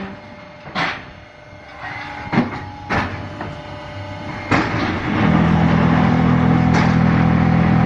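A large machine clanks and bangs as it presses blocks.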